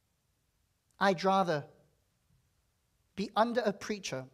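A man speaks with emphasis into a microphone, in bursts with pauses.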